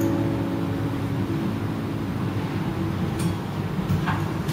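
An acoustic guitar is strummed softly.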